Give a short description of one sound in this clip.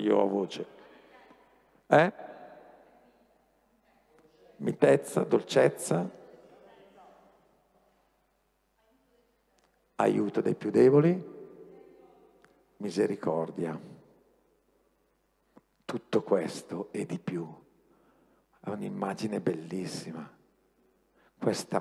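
A middle-aged man speaks with animation through a headset microphone, in pauses, in a large echoing hall.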